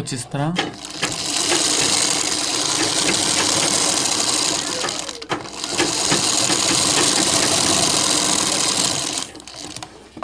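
A sewing machine runs steadily, stitching fabric.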